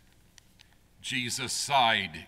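An elderly man begins reading aloud through a microphone in an echoing hall.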